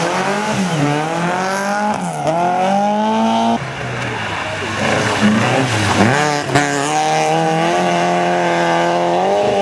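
A rally car engine revs hard and roars past, rising and falling in pitch.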